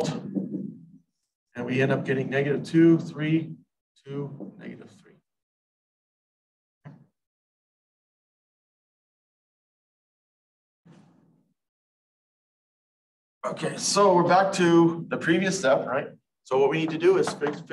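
A man lectures calmly, heard close through a microphone, with pauses.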